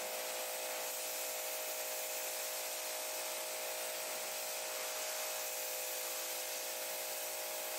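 A pressure washer sprays a hissing jet of water onto a car.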